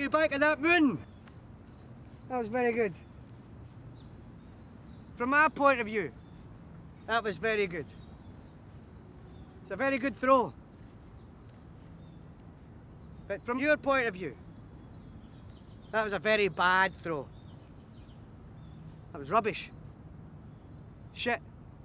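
A man speaks loudly outdoors in short, sharp bursts.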